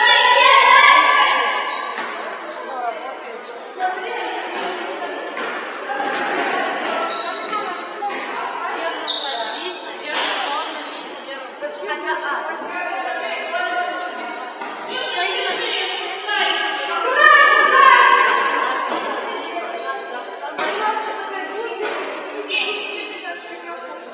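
Young women shout to each other in a large echoing gym.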